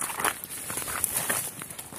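A dog pushes through dry brush, rustling the leaves and twigs.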